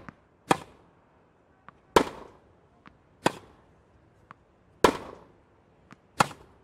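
A tennis ball bounces lightly on a court.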